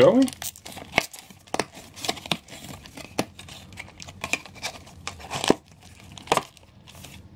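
Fingers tap on a cardboard box.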